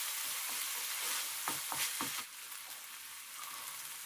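Peas tumble into a pan.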